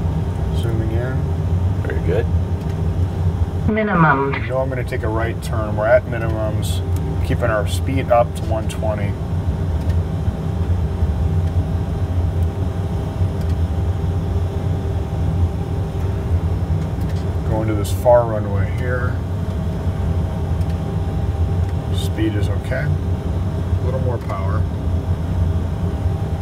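A steady low engine drone hums throughout.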